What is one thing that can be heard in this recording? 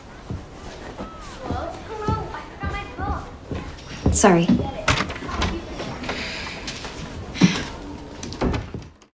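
A girl speaks nearby.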